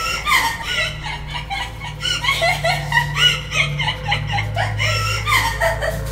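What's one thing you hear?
A woman shrieks and wails in a high, eerie voice.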